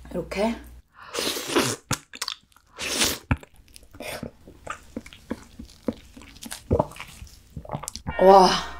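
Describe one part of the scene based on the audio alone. A young woman slurps and sucks loudly, close to a microphone.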